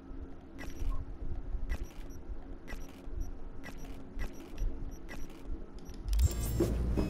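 Soft interface clicks tick at a steady pace.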